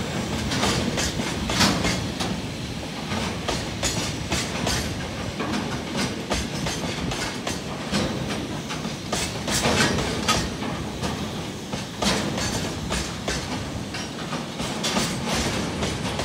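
Train wheels clatter and squeal over rail joints.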